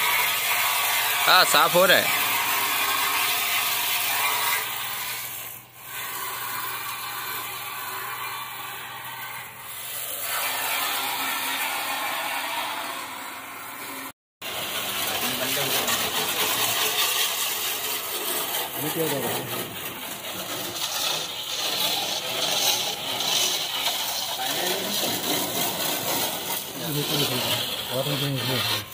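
A pressure washer sprays water onto concrete and a car with a steady, hissing rush.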